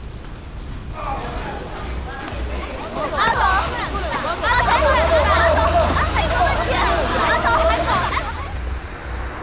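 Several men and women shout questions at once, close by.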